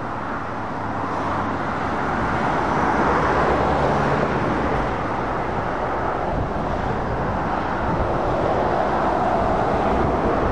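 Heavy trucks and cars roar steadily past on a busy road.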